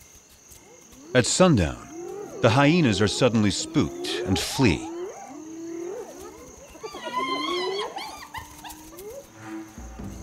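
Hyenas whoop and cackle with rising, falling cries close by.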